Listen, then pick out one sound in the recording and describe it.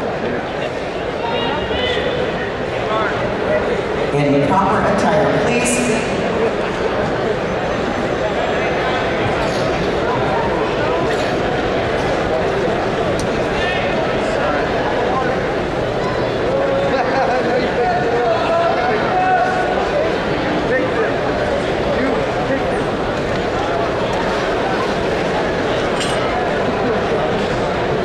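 A large crowd murmurs and chatters throughout a big echoing arena.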